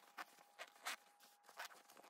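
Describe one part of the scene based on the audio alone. A zipper slides open.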